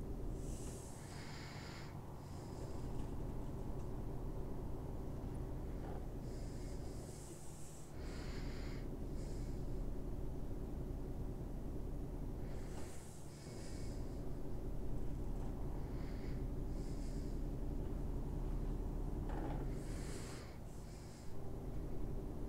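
Tyres roll on a road with a steady hum.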